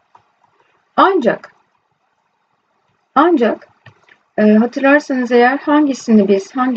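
A woman speaks calmly into a microphone, explaining, with pauses.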